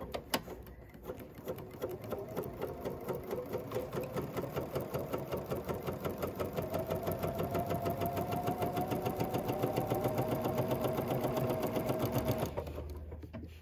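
A sewing machine stitches rapidly with a steady whirring rattle.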